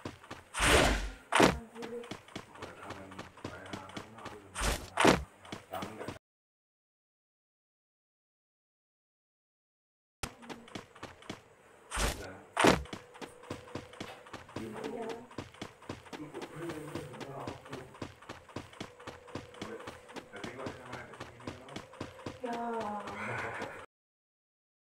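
Footsteps run on pavement.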